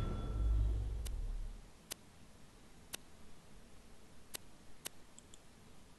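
Menu clicks tick sharply.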